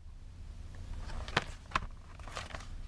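A cardboard box rustles and knocks as hands handle it.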